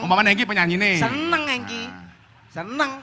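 A young man sings loudly through a microphone.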